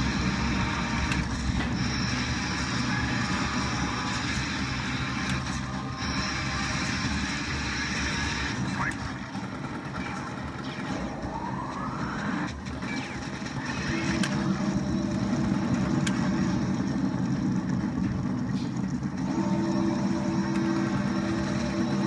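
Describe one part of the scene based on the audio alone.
Rapid gunfire rattles from an arcade game's loudspeakers.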